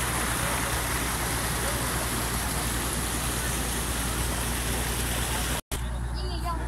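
Muddy water rushes and splashes loudly down a channel.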